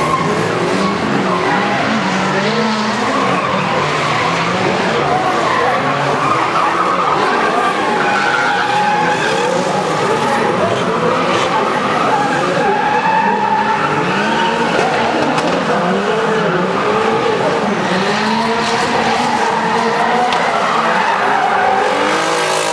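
Powerful car engines rev and roar loudly nearby, rising and falling in pitch.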